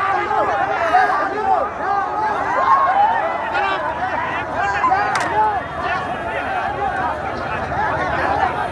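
A large crowd of men cheers and shouts loudly outdoors.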